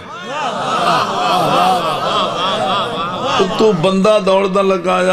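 A middle-aged man speaks with feeling into a microphone, his voice rising into a drawn-out chant.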